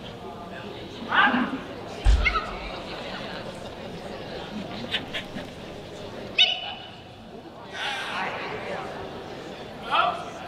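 A woman calls out short commands to a dog in a large echoing hall.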